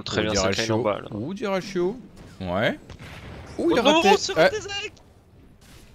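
Spell effects crackle and boom in a fight.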